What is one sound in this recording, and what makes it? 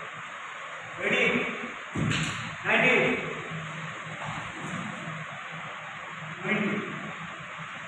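Young men shout sharply in short bursts in an echoing room.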